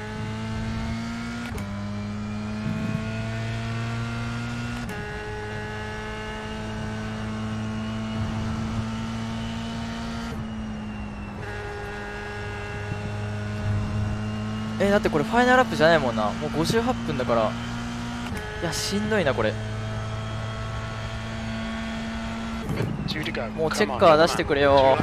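A racing car engine hums steadily, shifting pitch as it changes gear.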